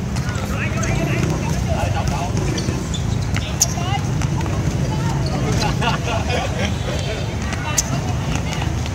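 Sneakers scuff on the hard court.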